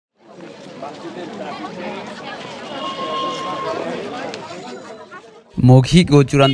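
A crowd of young women murmurs and chatters outdoors.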